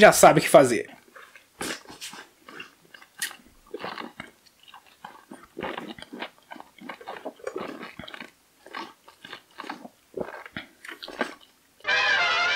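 A man sips loudly through a straw.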